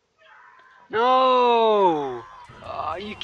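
A teenage boy shouts loudly and drawn out, close to a microphone.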